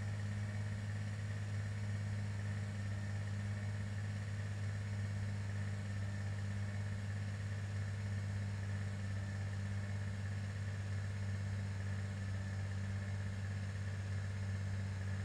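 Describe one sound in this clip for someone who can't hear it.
Twin propeller engines drone steadily and loudly.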